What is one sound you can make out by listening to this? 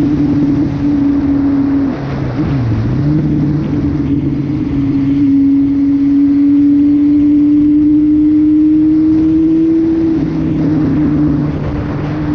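A motorcycle engine hums steadily, its pitch dipping and rising as it shifts gears.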